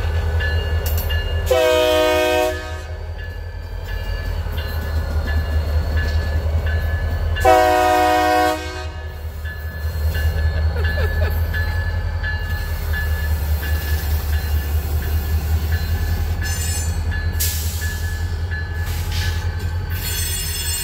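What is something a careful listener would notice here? A diesel locomotive engine rumbles steadily close by.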